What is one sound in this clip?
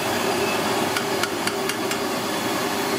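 A metal ladle clinks against a wok a few times.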